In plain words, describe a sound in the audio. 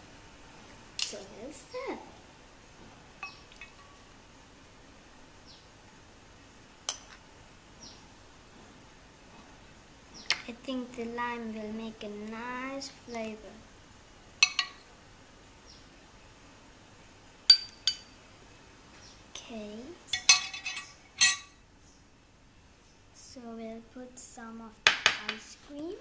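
A spoon clinks against a glass dish.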